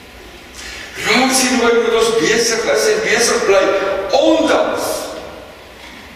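An elderly man speaks calmly into a microphone in a reverberant room.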